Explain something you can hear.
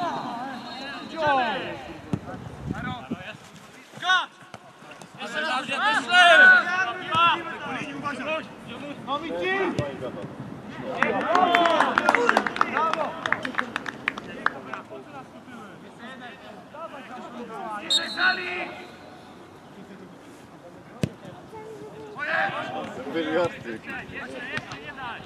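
Young men shout and call to each other across an outdoor field.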